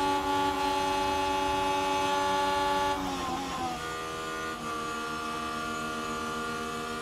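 A racing car engine whines at high revs, then drops in pitch as the car slows.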